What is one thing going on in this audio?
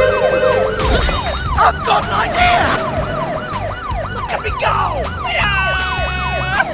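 A police siren wails rapidly up and down.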